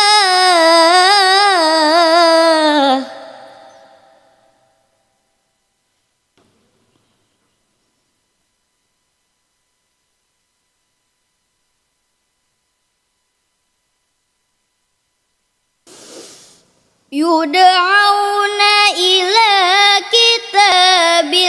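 A young woman chants a melodic recitation into a microphone, with long held notes.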